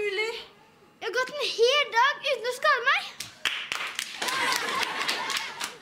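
A boy speaks with excitement, close by.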